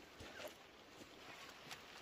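Footsteps squelch on wet mud.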